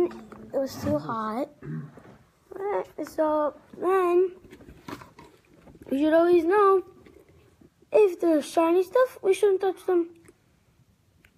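A boy talks with animation close to a phone microphone.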